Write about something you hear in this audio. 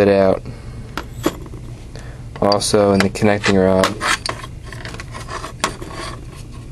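Metal parts clink and knock against a metal surface.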